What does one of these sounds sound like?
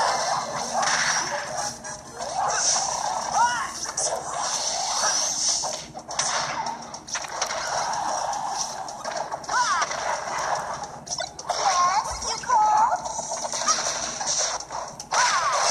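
A video game's fight plays through a television speaker, with hits, blasts and music.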